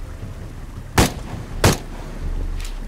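Gunshots ring out in loud, sharp bursts.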